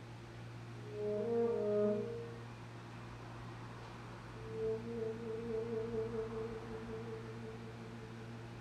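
A saxophone plays soft, sustained notes.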